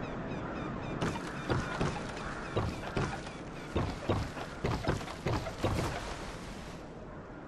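Footsteps thud quickly on wooden planks.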